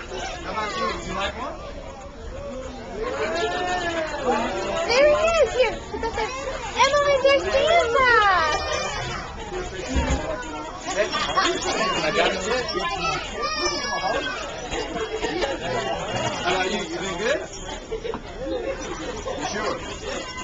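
Several voices chatter and laugh around.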